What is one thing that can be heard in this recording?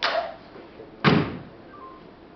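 A body thuds onto a wooden platform.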